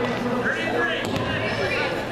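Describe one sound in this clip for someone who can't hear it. A basketball bounces on a hard wooden floor.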